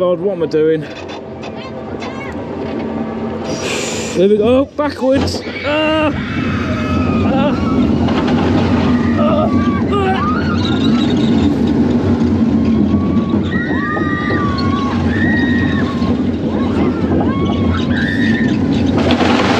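A roller coaster train rumbles and clatters along its track.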